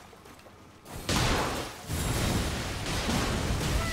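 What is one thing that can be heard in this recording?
A loud magical blast bursts and crackles.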